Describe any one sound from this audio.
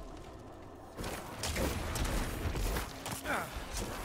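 Weapons slash and clash in a noisy fight.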